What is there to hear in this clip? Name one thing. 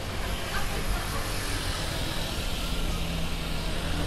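A scooter engine hums as it passes.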